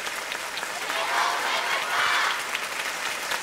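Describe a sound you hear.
A group of young people shouts together.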